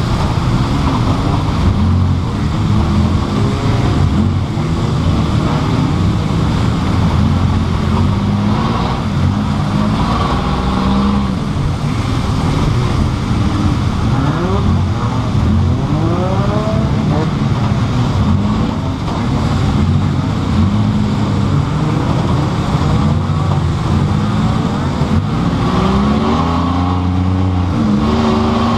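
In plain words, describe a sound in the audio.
A race car engine roars loudly up close, revving up and down as the car speeds along.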